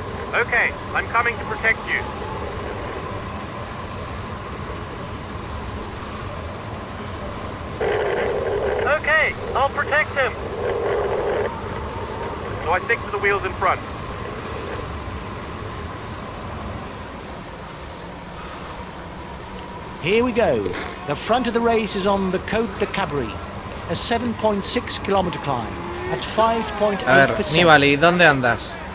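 A middle-aged man talks with animation into a headset microphone, close by.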